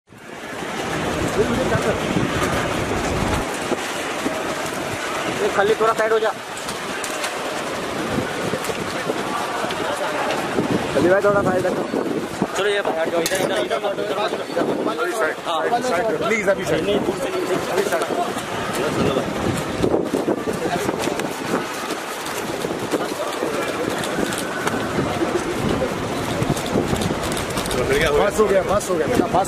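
A crowd of men talk and call out around the listener.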